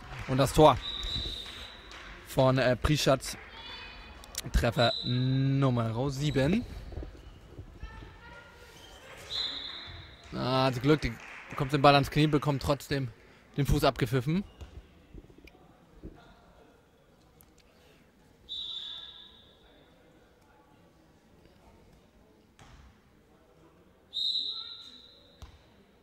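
A referee's whistle blows in short sharp blasts in an echoing hall.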